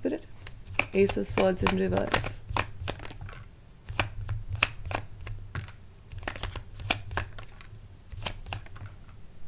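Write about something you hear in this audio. Cards shuffle and riffle in hands with quick crisp flicks.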